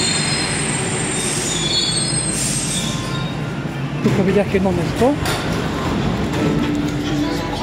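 A metro train rumbles and hums steadily.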